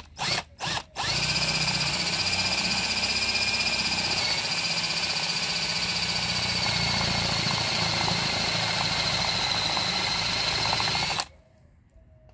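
A band saw whines steadily as it cuts through hard plastic.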